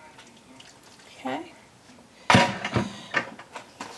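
Dishes clatter and knock on a counter.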